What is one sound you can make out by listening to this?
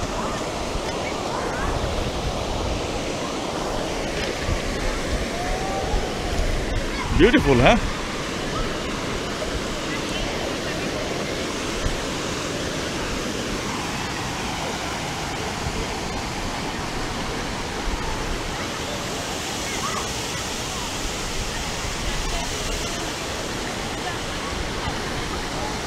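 Water rushes steadily over a weir outdoors.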